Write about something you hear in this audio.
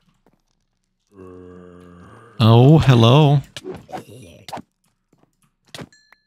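A zombie groans as it is struck.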